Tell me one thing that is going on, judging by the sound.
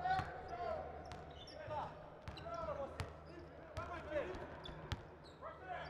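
A basketball thuds on the floor as it is dribbled.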